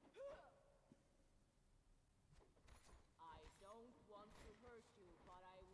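A sword swishes through the air.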